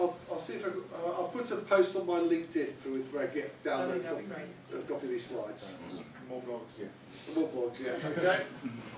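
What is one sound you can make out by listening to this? A middle-aged man speaks with animation in a small, slightly echoing room.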